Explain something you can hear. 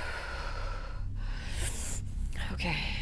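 A young woman exhales slowly.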